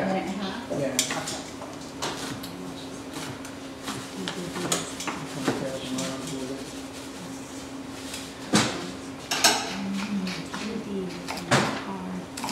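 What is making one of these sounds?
Metal utensils clatter against pots.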